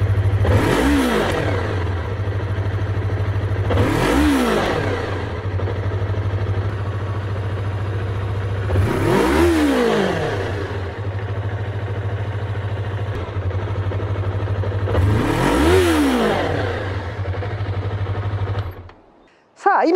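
A motorcycle engine idles loudly close by and is revved several times.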